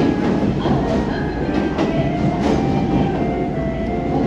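A train approaches and rolls into the station.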